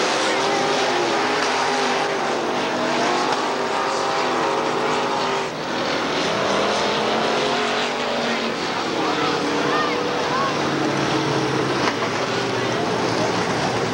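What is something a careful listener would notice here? Race car engines roar loudly, rising and falling in pitch.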